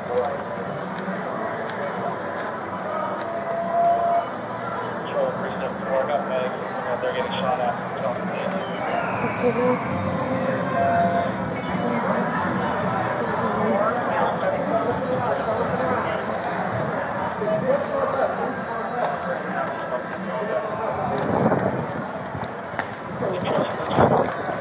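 Slot machines chime and jingle nearby.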